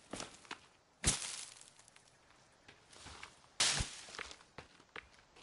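Leaves rustle sharply as they are plucked.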